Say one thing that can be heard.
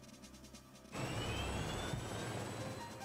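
A helicopter engine roars loudly.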